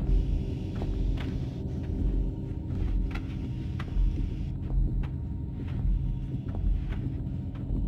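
Heavy knocks thump at an uneven pace.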